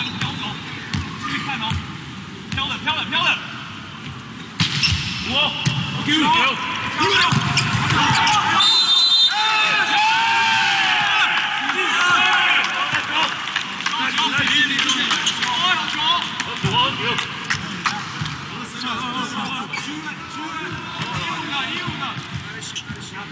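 A crowd in a large hall cheers and chants.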